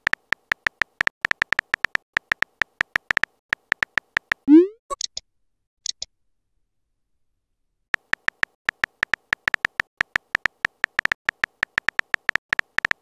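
Keys click rapidly as someone types.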